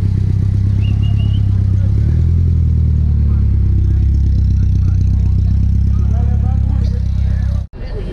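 A car engine rumbles deeply and steadily as the car rolls slowly away.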